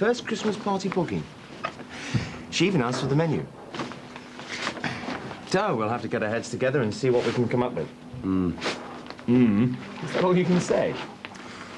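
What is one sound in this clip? Paper rustles as a man handles a wrapped parcel.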